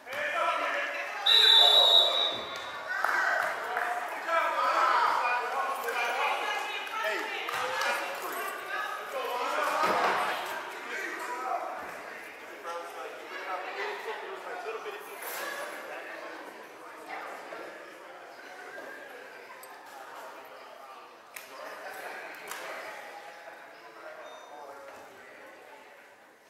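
Children chatter and shout, echoing in a large hall.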